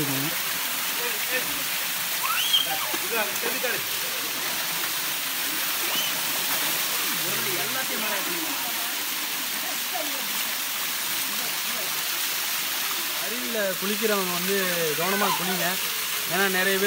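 A waterfall splashes steadily onto rocks.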